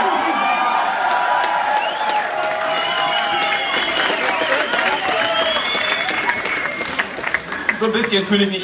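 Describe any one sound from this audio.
A large crowd cheers, whistles and shouts.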